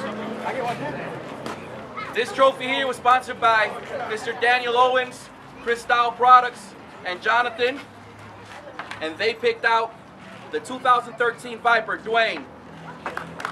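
A man speaks with animation over a loudspeaker outdoors.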